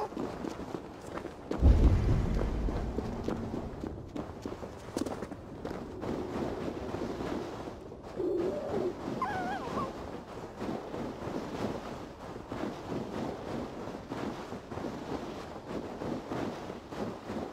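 Footsteps crunch quickly through deep snow.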